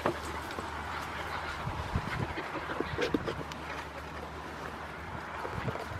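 Dogs pant close by.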